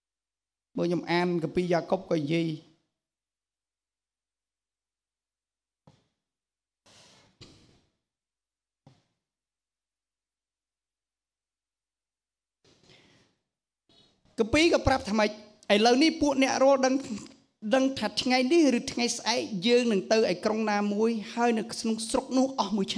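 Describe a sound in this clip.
A middle-aged man speaks into a microphone, pausing and then preaching with animation.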